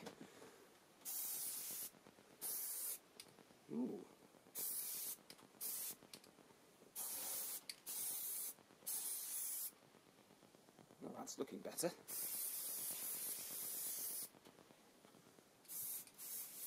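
An aerosol can sprays in short, sharp hissing bursts.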